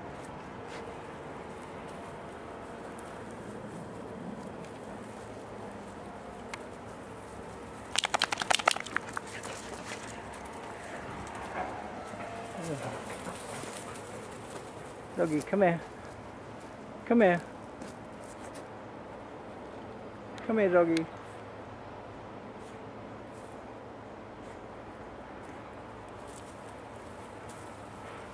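A dog sniffs at the ground.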